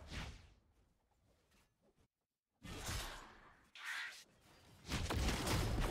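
Magic blasts and blows crackle and boom in a video game battle.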